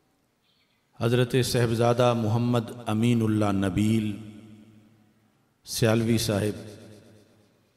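A middle-aged man speaks into a microphone with animation, his voice echoing in a hall.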